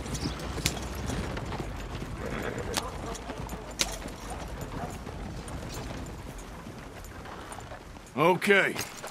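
Horse hooves clop steadily on a dirt road.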